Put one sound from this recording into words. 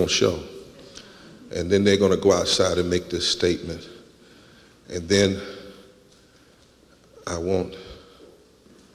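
A man speaks loudly through a microphone in a large echoing hall, pausing between phrases.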